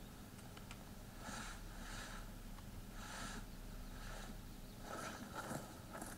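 Leafy branches rustle and swish as someone pushes through them.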